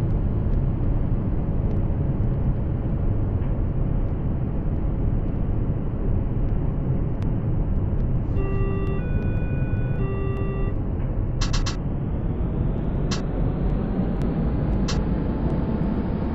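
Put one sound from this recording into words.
A tram rumbles steadily along rails.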